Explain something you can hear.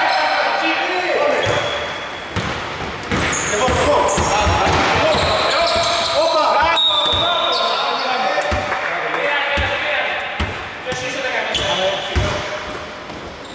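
Men shout and call out to each other across the hall.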